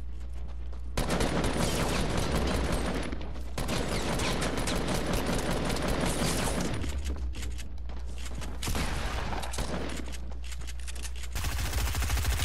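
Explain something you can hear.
Wooden panels clatter into place in quick succession.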